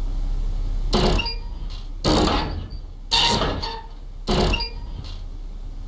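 A heavy metal valve wheel turns with a creaking clank.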